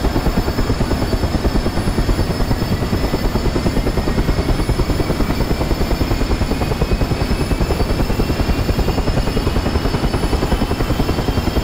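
Helicopter rotor blades thump rapidly and steadily.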